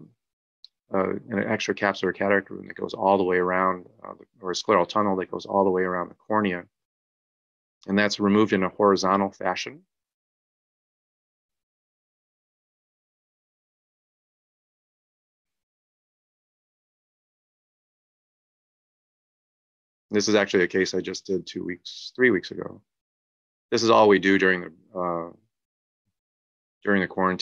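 A man speaks calmly through an online call, explaining at length with pauses.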